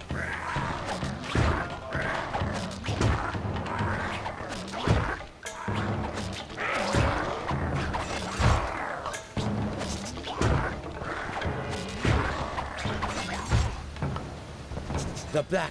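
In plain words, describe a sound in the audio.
Punches and blows land with sharp thuds.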